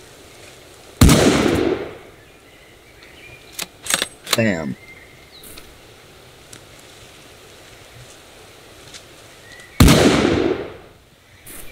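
A gunshot rings out loudly and echoes away.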